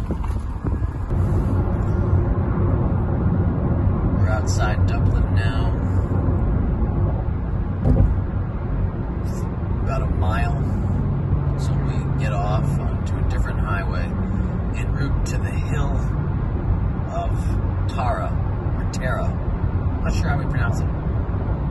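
A car's tyres and engine rumble steadily on a fast road, heard from inside.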